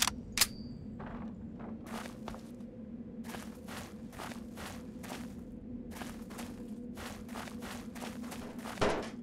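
Footsteps crunch steadily over gravel and rock.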